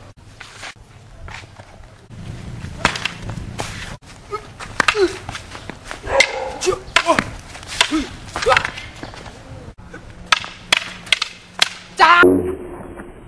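Wooden sticks strike and clack together sharply.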